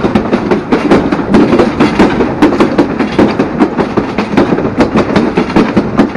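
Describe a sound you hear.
A train rattles and clatters loudly along the tracks.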